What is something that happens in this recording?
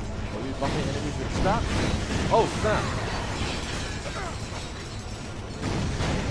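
Video game gunfire and explosions crackle and boom.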